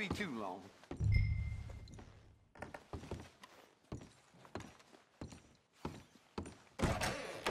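Boots thud on a wooden floor at a walking pace.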